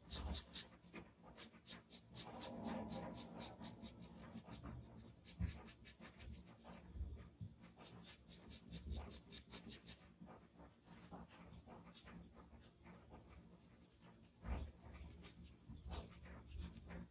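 A cotton swab rubs and dabs softly on paper.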